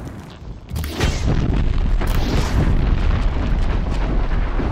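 Fiery explosions boom and crackle.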